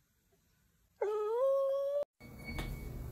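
A dog vocalizes close by.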